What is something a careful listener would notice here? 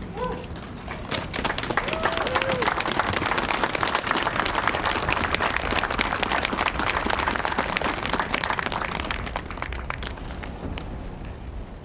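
A large outdoor crowd applauds and cheers loudly, then the applause fades.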